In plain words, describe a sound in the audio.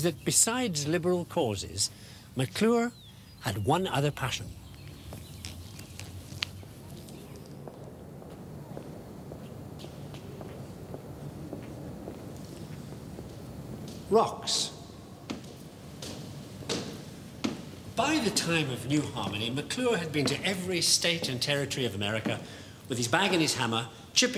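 An elderly man speaks calmly and clearly to a listener nearby.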